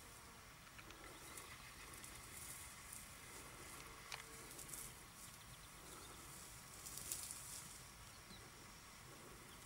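Dry grass rustles and crackles close by.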